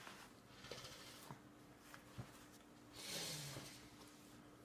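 A tissue rubs softly.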